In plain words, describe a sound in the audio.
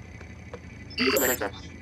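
An electronic menu chimes with a bright beeping burst.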